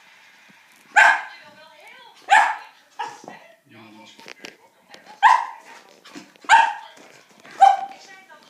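A Shetland sheepdog barks sharply in play.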